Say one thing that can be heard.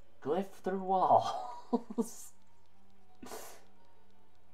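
A young man laughs briefly.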